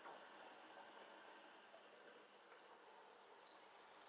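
A metal lid clinks as it is lifted off a pan.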